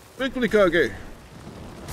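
A young man speaks briefly with animation into a microphone.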